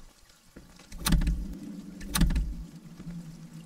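A locked door rattles as its handle is tried.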